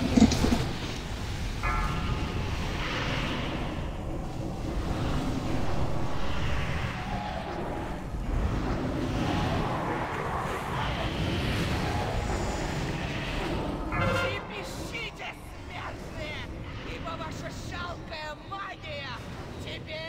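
Magic spells crackle and whoosh in a busy battle.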